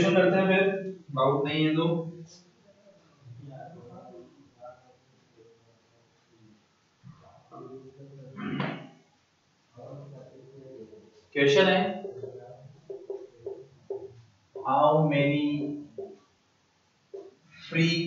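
A man lectures with animation.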